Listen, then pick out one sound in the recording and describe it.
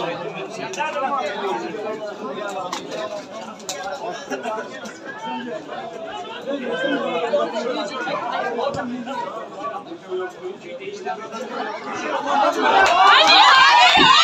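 Men close by talk and shout excitedly outdoors.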